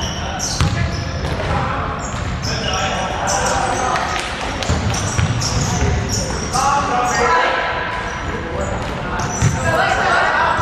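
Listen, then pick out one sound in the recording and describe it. Young players shout and call out across an echoing hall.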